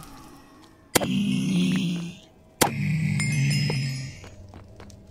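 A creature grunts angrily.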